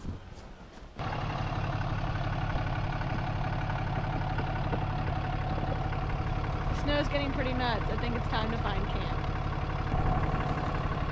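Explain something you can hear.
A pickup truck engine idles.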